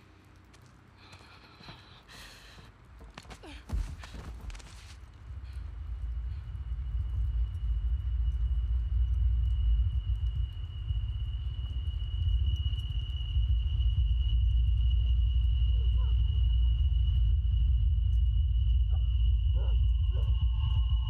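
A young woman mutters in distress, close by.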